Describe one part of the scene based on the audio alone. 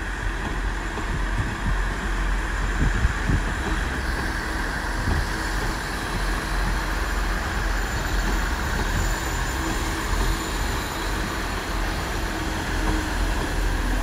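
A steam locomotive chuffs heavily as it approaches slowly.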